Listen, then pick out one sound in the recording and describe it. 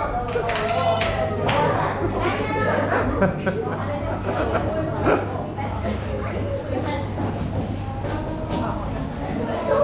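Several young women and men chatter nearby in a lively room.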